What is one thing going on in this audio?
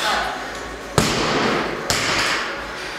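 A loaded barbell drops and slams onto the floor, its plates clattering.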